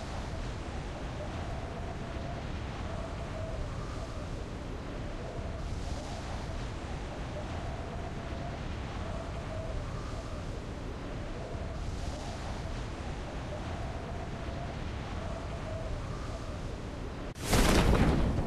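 Wind rushes loudly past a skydiver in free fall.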